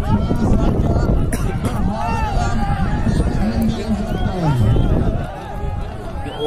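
A crowd of men shout and call out loudly outdoors.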